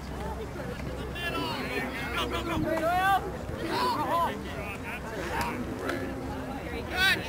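Lacrosse sticks clack together.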